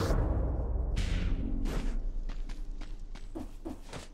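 A game character's weapon swings and strikes in quick sharp hits.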